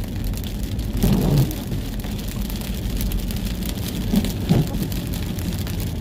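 Heavy rain patters and drums on a car windscreen.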